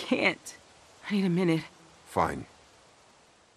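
A young woman speaks wearily.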